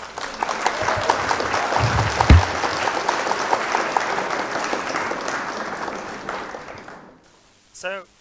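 An audience applauds and cheers in a large hall, then the applause fades.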